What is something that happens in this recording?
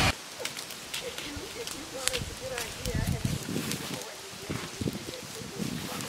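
A rake scrapes through dry leaves.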